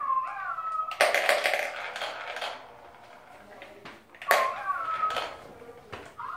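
Small plastic balls rattle and roll around a plastic toy track.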